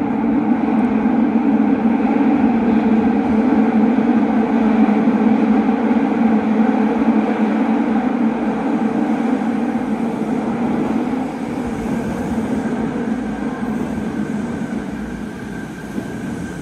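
A train rumbles into an echoing station and slows down.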